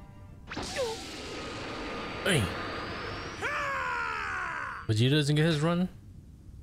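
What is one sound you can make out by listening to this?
A powerful energy blast roars with a rushing hiss.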